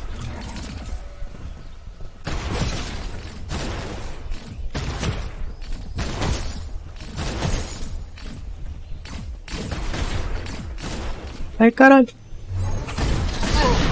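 Rapid gunfire and ability effects crackle from a video game.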